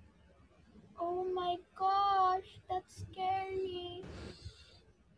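A young woman sings a sustained, wavering melody.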